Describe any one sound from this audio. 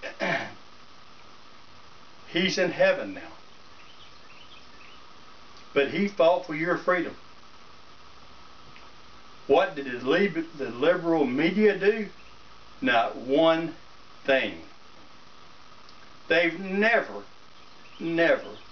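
An older man speaks calmly nearby, in short phrases with pauses.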